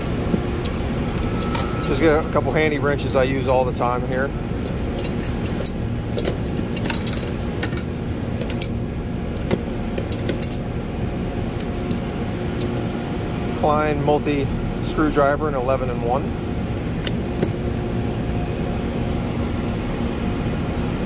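Metal hand tools clink and rattle against each other.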